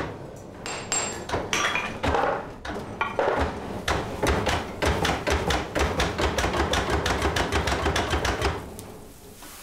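A forge fire roars and crackles loudly.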